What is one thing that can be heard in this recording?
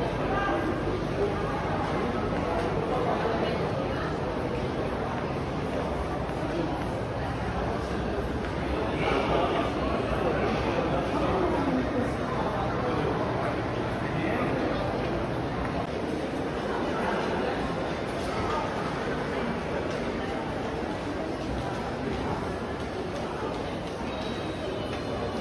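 Many voices murmur and echo in a large indoor hall.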